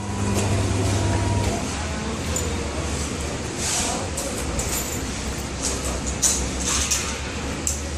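A vacuum skin packing machine hums.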